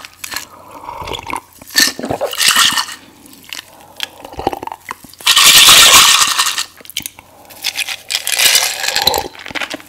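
A young woman sips and slurps from a glass close to a microphone.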